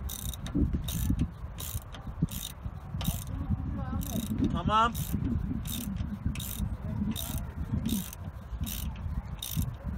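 A ratchet wrench clicks in quick bursts as a bolt is turned.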